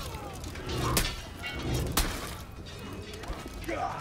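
An explosion bursts with a loud crackle.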